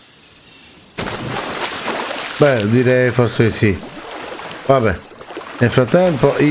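Water splashes and swishes as a swimmer moves through it.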